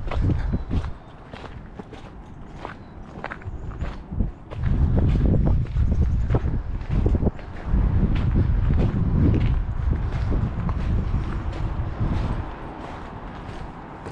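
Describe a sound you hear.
Footsteps crunch on gravel and grit.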